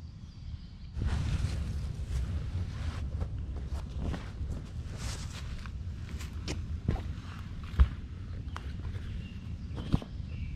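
A canvas sheet rustles and scrapes on the forest floor.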